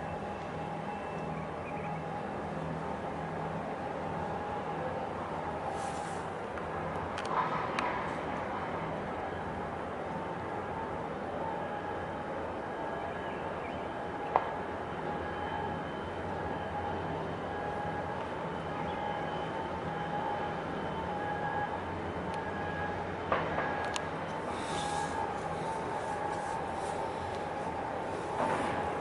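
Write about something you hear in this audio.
A large ship's engines rumble low and steady nearby.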